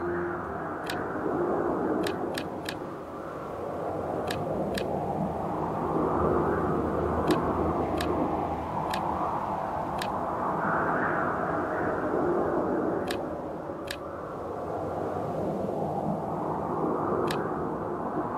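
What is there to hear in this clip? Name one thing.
Short sharp clicks sound at irregular moments.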